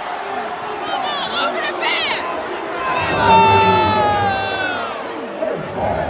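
Basketball shoes squeak sharply on the court.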